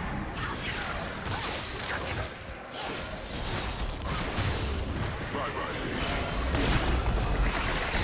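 Fighting game sound effects of spells whoosh, zap and crackle in quick bursts.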